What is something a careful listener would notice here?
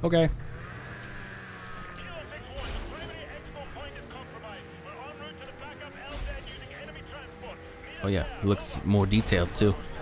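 A snowmobile engine drones steadily.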